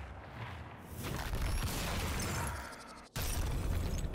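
A rumbling whoosh swells.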